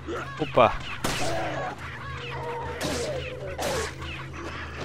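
Gunshots crack sharply, a few times.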